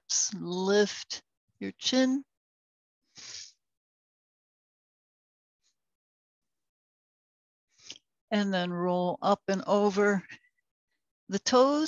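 A woman speaks calmly and gives slow instructions, close by.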